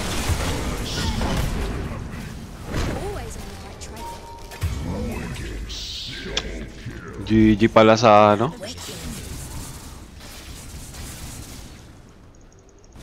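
Fighting sound effects and spell blasts ring out from a video game.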